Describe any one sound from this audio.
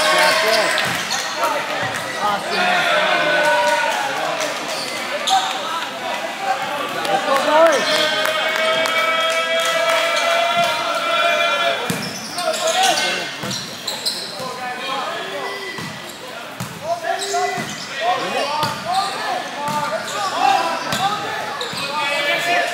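A crowd of young men and women chatters and calls out in a large echoing hall.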